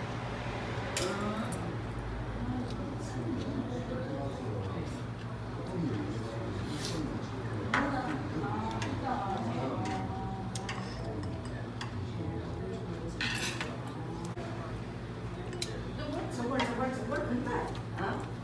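Chopsticks clink against bowls and plates.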